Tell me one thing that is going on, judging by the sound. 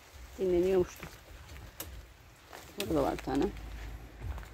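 A hen clucks nearby.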